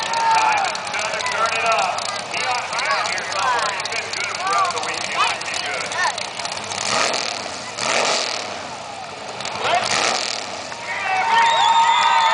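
A race car engine revs loudly, rising and falling in pitch.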